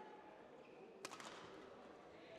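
A racket smacks a shuttlecock.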